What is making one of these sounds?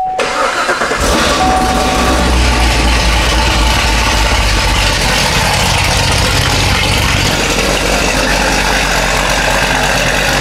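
A car engine starts and idles with a steady rumble.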